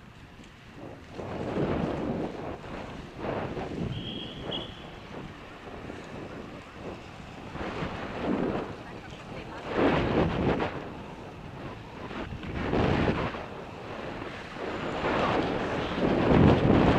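Wind rushes past in loud gusts while riding.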